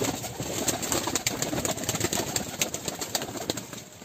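A pigeon flaps its wings loudly close by.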